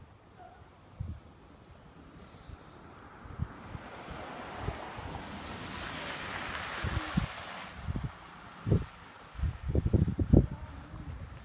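Boots crunch through snow close by.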